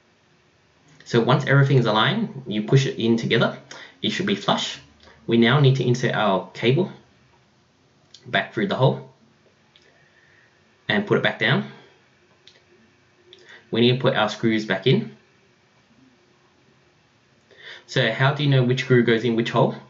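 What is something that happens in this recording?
A man speaks calmly close by, in short bursts with pauses.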